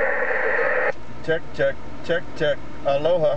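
A radio gives out short, warbling bursts of sound.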